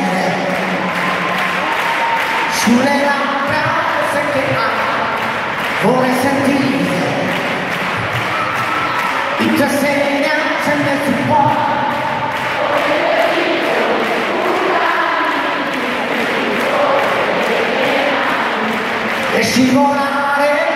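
A man sings into a microphone through loud speakers in a large hall.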